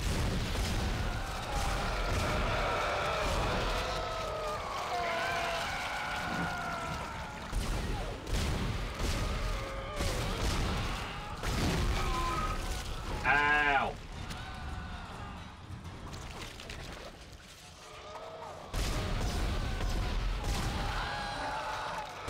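A plasma gun fires sharp shots.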